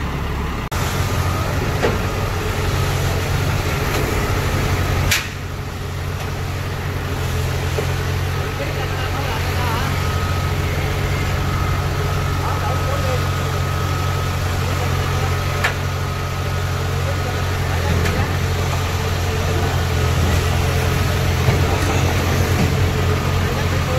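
Metal tracks clank as a heavy machine climbs a ramp.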